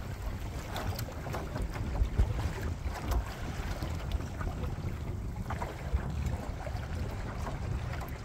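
Small waves lap and splash against a boat's hull.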